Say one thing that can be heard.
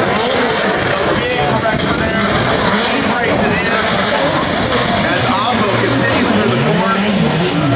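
Tyres squeal as drift cars slide sideways.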